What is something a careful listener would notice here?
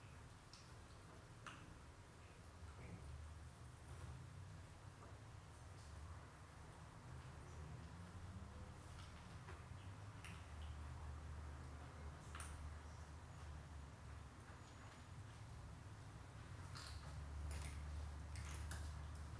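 A kitten laps and chews food from a plastic bowl.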